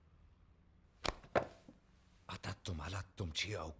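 A man speaks sternly and slowly close by.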